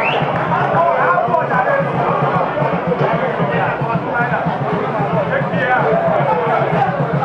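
Several young men shout and call out to each other outdoors.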